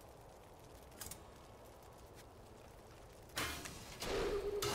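Game sound effects chime and whoosh as an item menu opens.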